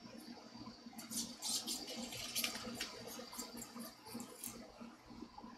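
Loose guitar strings rattle and scrape as they are pulled out.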